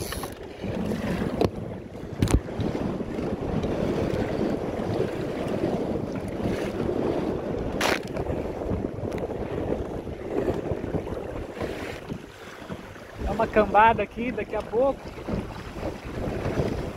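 Choppy waves splash against a small boat's hull.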